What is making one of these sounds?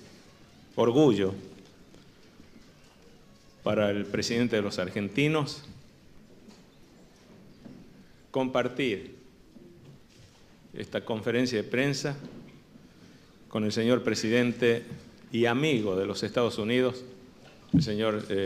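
A middle-aged man speaks slowly and formally into a microphone, with pauses between phrases.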